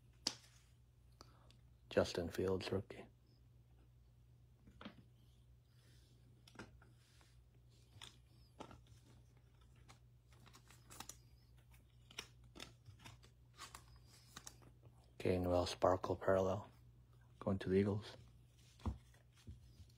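Plastic card holders tap and click softly as they are set down.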